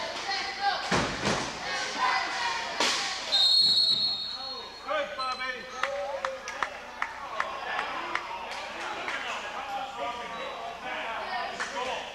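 People shout and call out across the hall.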